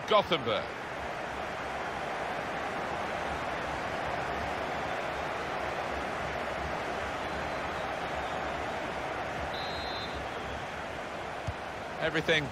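A large crowd cheers and chants steadily in a stadium.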